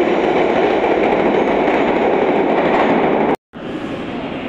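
A metro train rumbles away from a platform in an echoing underground hall.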